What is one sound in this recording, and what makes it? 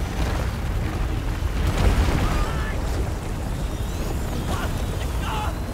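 A torch flame crackles and roars.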